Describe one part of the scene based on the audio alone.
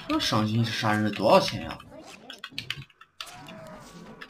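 Weapons clash and spells crackle in a fight.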